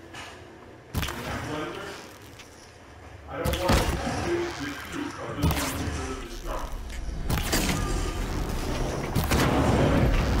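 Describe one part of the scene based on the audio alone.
A bowstring twangs as arrows are loosed, one after another.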